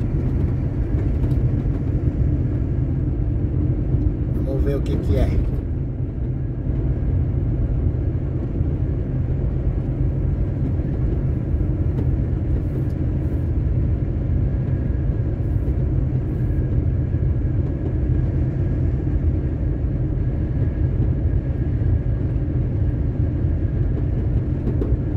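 Tyres roll steadily on a paved road.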